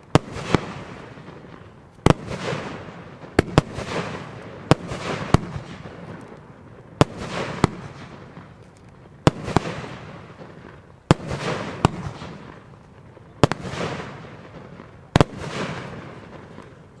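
Sparks crackle and hiss after each burst, slowly fading.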